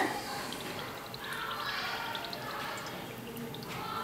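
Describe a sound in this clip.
Oil pours and trickles into a pan.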